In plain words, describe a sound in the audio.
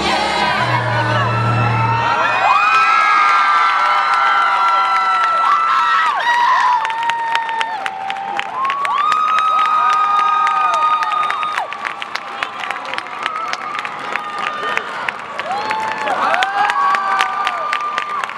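A young crowd cheers and screams.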